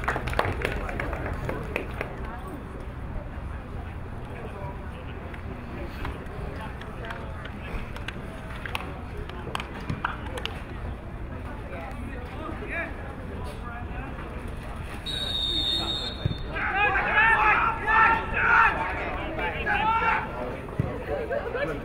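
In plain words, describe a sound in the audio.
Men chatter faintly in the distance outdoors.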